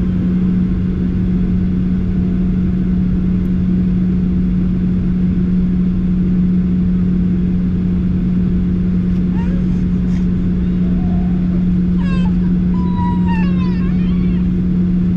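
Jet engines hum steadily and loudly as an airliner taxis.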